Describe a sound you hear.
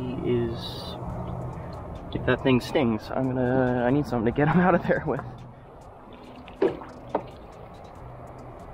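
Water sloshes in a plastic bucket.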